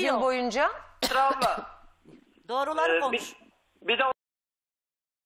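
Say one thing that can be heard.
A woman answers calmly over a phone line.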